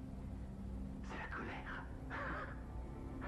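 A man laughs briefly.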